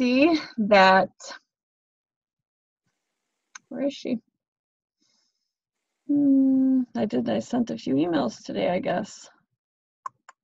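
A woman talks calmly into a microphone, close by.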